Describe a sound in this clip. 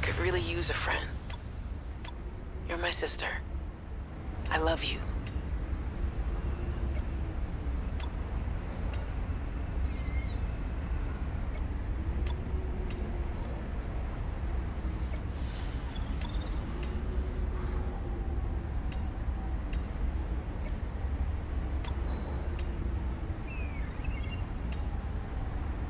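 Soft interface clicks sound as menu items are selected.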